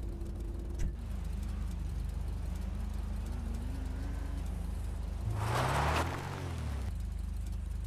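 A car engine revs and rises in pitch.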